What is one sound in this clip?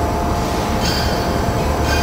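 A gas torch hisses while cutting metal.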